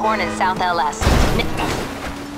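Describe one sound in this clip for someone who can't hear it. A car strikes a person with a loud thud.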